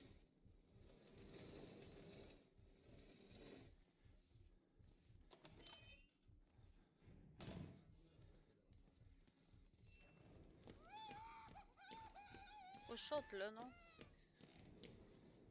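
Slow footsteps thud on creaking wooden floorboards.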